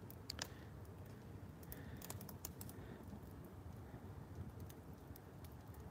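A fire roars steadily.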